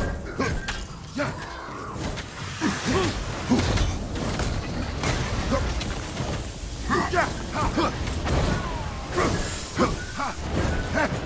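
Heavy blows thud and crash in a fight.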